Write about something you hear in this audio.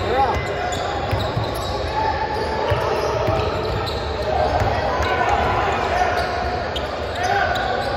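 Young men shout and call out across the gym.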